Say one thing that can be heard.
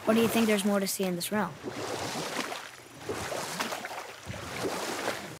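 Oars splash and paddle through water.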